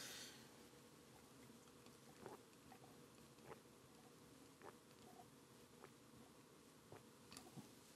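A man gulps down a drink.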